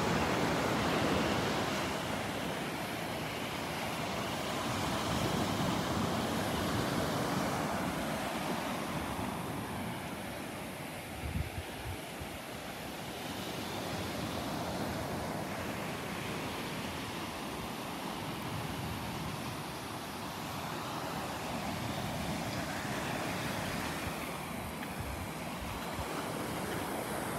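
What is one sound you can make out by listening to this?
Waves wash steadily onto a beach nearby.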